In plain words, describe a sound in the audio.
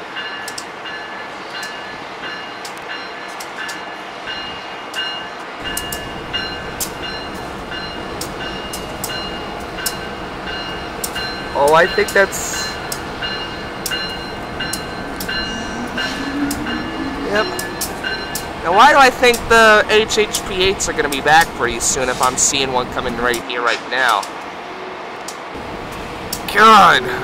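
A locomotive engine hums in the distance.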